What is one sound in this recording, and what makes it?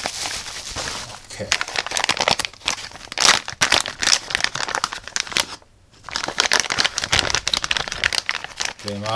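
A plastic bag crackles as it is handled.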